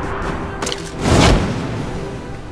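A parachute snaps open with a whoosh.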